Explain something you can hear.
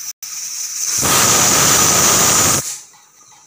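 A pressure cooker whistles loudly as steam bursts out.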